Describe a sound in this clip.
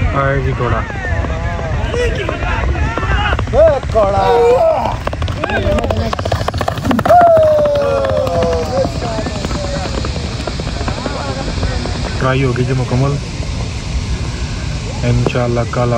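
A horse gallops past, hooves thudding on dirt.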